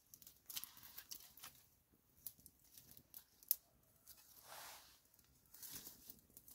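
A small wood fire crackles softly.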